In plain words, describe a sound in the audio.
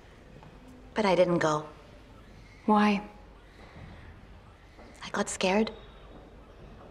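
A woman answers calmly up close.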